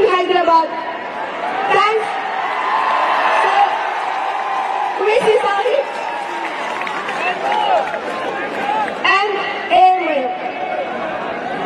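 A young woman speaks through a microphone over loudspeakers.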